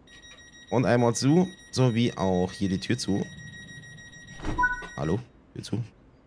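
A train door warning tone beeps steadily.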